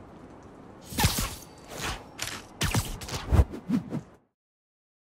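A web line shoots out with a sharp swish.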